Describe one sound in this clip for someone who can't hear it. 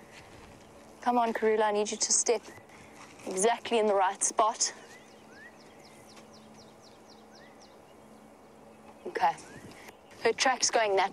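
A young woman speaks with animation close by, outdoors.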